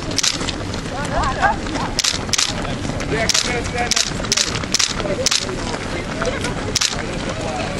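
Adult runners talk briefly among themselves outdoors.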